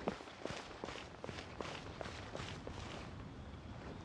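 Quick footsteps run across a hard floor.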